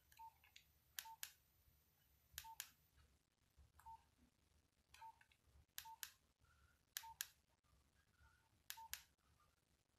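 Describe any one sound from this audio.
Phone keys click as buttons are pressed.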